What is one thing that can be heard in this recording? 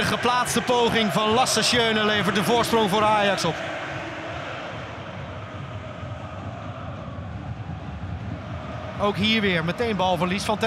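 A stadium crowd murmurs in a large open space.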